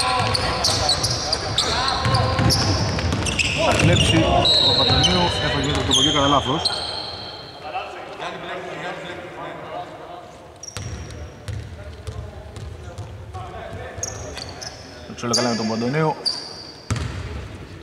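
Basketball shoes squeak on a hardwood court in a large echoing hall.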